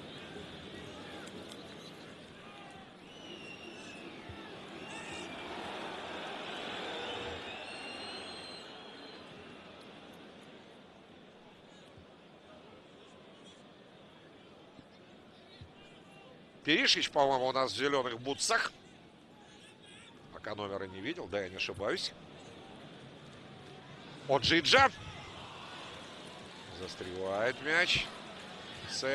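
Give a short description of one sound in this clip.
A large stadium crowd murmurs and chants steadily outdoors.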